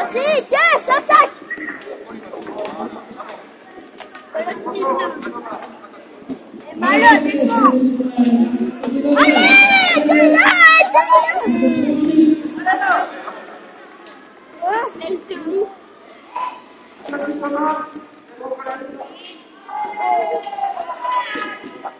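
Young children shout and squeal excitedly in a large echoing hall.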